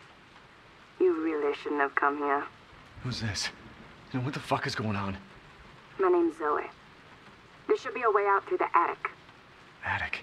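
A woman's distorted voice speaks in short phrases through a telephone.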